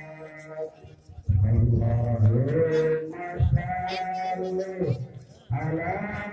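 A crowd of men and women sings a slow chant together outdoors.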